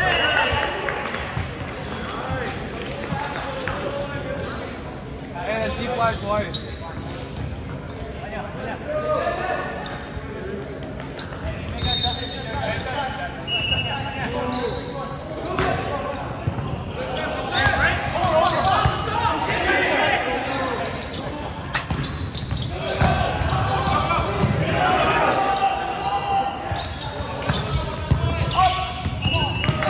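Young men call out and shout to each other in a large echoing gym.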